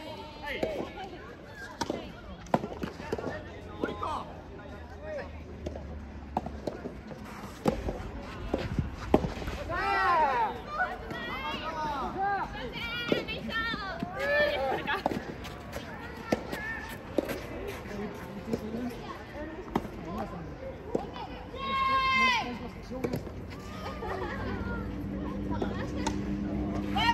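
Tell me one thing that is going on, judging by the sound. Tennis balls are struck with rackets in sharp pops.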